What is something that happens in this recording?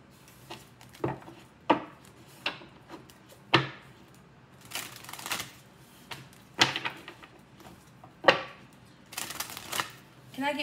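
Playing cards are shuffled with quick flicks and taps.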